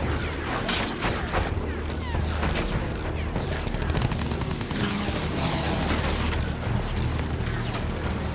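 Anti-aircraft shells burst with sharp bangs.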